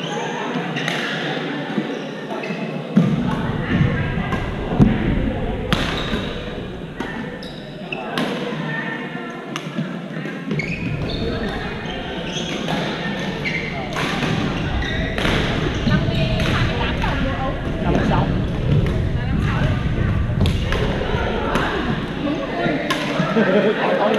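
Shuttlecocks are struck with sharp pops of rackets.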